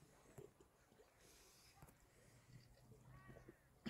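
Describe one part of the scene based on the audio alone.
A man gulps a drink from a bottle.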